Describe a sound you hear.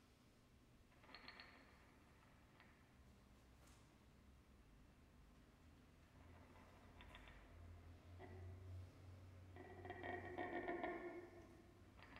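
An electric guitar plays sparse, echoing notes and swelling drones through an amplifier.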